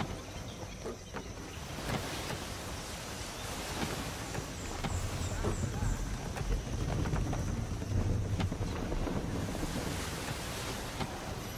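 Waves wash against a sailing ship's hull.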